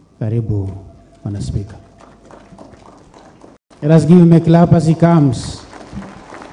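A man speaks in a sing-song, chanting voice through a microphone and loudspeakers, with a long echo.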